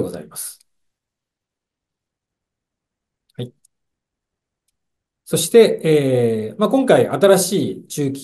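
A man speaks calmly into a microphone, heard through an online call.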